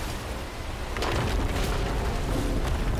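Stone crashes and rumbles as a building collapses.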